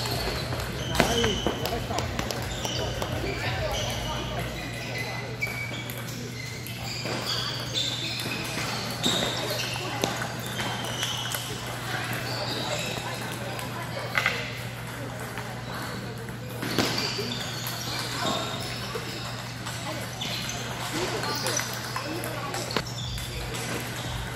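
Balls clatter from many other tables in a large echoing hall.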